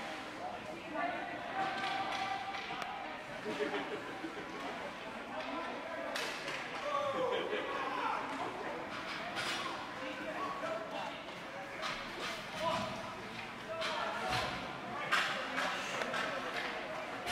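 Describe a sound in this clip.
Hockey sticks clack against a puck and the ice.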